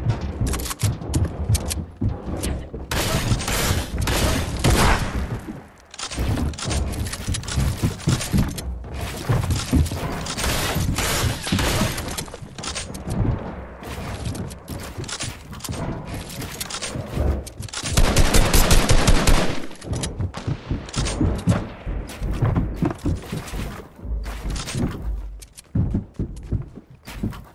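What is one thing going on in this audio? Building pieces snap and clatter into place in quick bursts.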